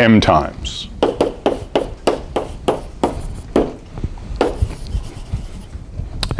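Chalk taps and scrapes sharply on a board.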